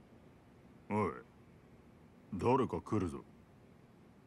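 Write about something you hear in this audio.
A man speaks in a rough, casual voice close by.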